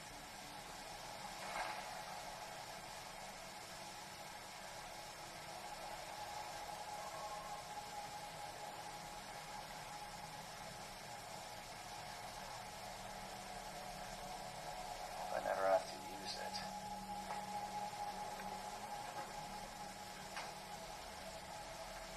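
Game sound plays quietly from a small handheld computer's speakers.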